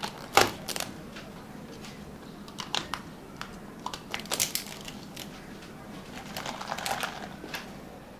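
Plastic cups knock and slide on a hard counter.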